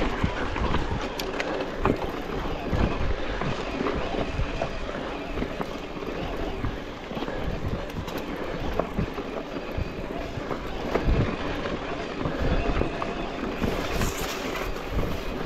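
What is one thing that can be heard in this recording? Bicycle tyres crunch and rattle over a rocky dirt trail.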